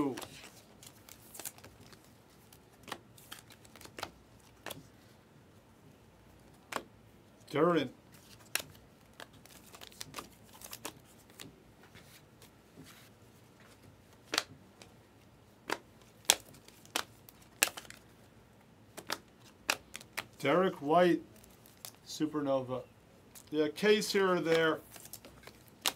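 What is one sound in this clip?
Trading cards click and rustle as they are shuffled by hand.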